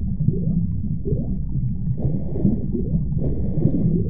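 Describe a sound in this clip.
Air bubbles gurgle underwater.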